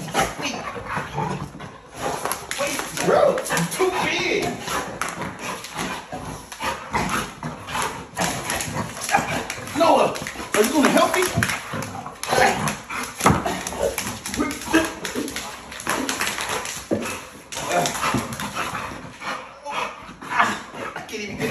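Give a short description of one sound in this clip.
A dog chews on a rubber toy.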